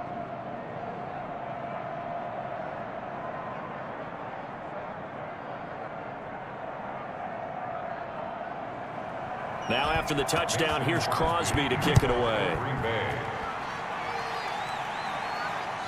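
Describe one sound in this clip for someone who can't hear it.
A large stadium crowd roars steadily and swells into loud cheering.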